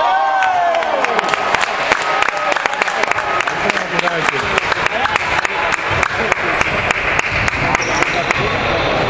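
A basketball bounces rapidly on a hard floor.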